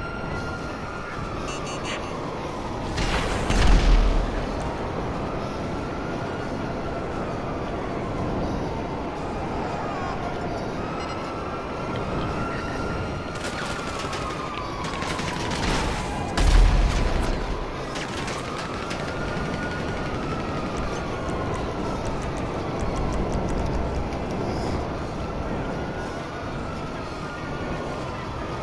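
A jet engine roars steadily, its pitch rising and falling in slow sweeps.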